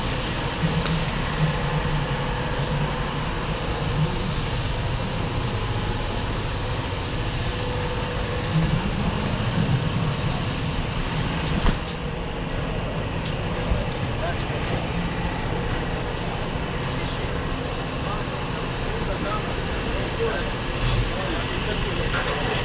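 A large bus engine idles close by with a steady low rumble.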